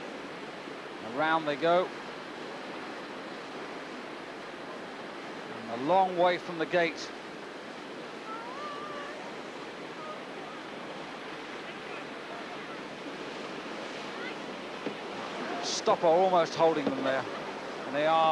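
Rushing white water churns and roars steadily.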